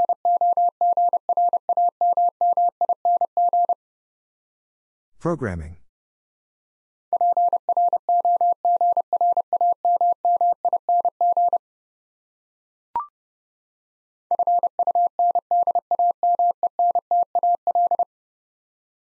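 A telegraph key taps out rapid bursts of steady Morse code beeps.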